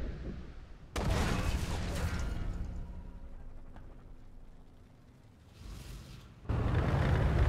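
A shell strikes a tank's armour with a loud, sharp blast.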